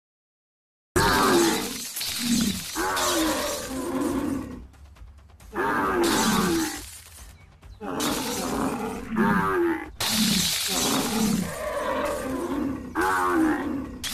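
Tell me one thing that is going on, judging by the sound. Buffaloes bellow and grunt loudly.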